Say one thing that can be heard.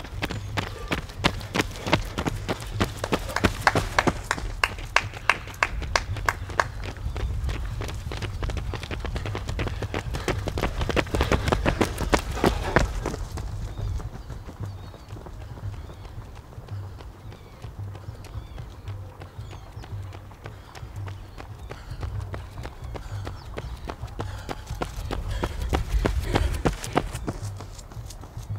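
Running shoes slap rhythmically on pavement close by.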